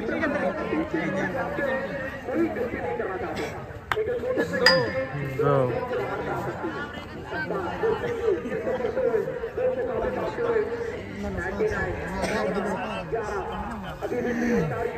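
A crowd of people chatter and shout outdoors.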